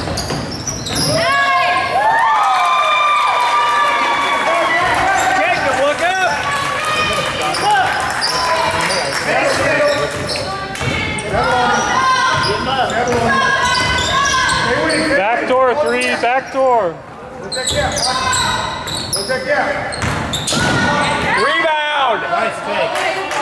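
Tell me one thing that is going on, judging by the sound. Sneakers squeak on a hardwood floor in a large echoing gym.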